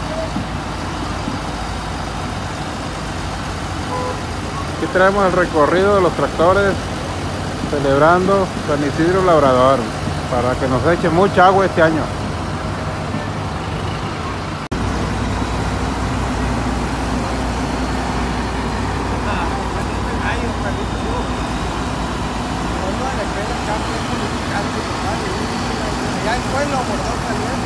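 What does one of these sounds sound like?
Tractor engines rumble steadily as they roll slowly past.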